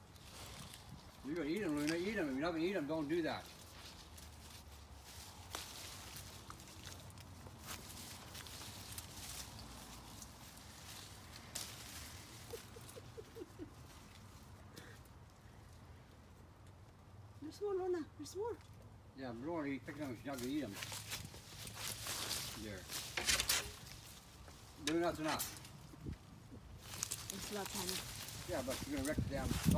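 Leaves rustle as tree branches shake.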